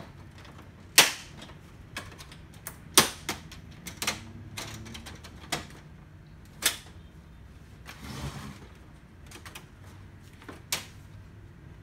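Plastic panels knock and snap as a case is handled.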